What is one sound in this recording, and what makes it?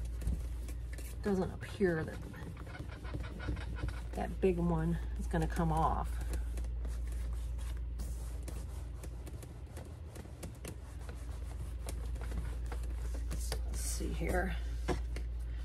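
Objects rustle and click as a handbag is handled.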